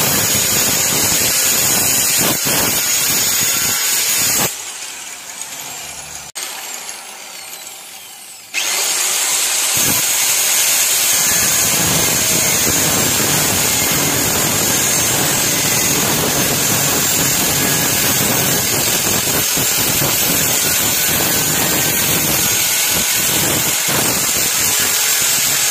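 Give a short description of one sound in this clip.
An angle grinder whines loudly as its disc spins.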